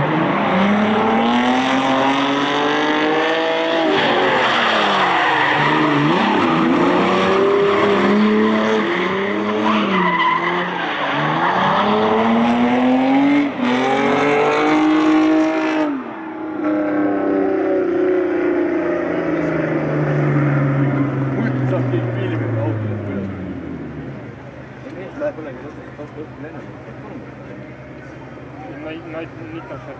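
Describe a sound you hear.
Tyres screech on asphalt.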